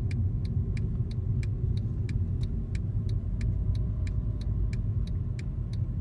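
A car engine and tyres rumble low and steady on a road.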